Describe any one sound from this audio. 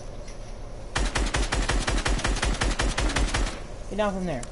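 A rifle fires in a rapid burst of shots.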